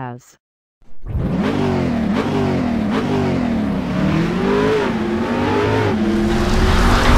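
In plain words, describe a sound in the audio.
An engine revs hard, its pitch rising and falling.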